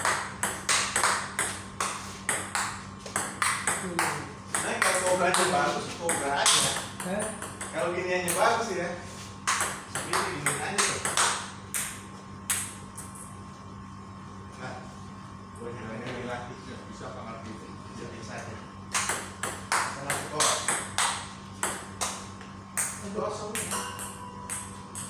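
A ping pong ball clicks quickly back and forth on paddles and a table.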